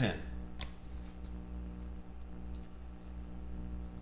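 Playing cards slide and tap softly against a stack of cards.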